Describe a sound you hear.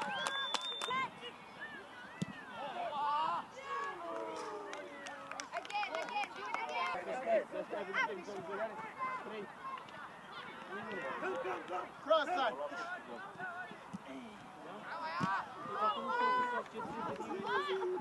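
Young boys shout to each other across an outdoor football pitch.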